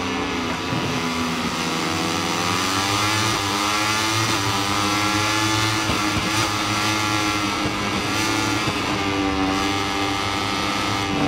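A motorcycle engine roars loudly at high revs, rising and falling in pitch as it shifts gears.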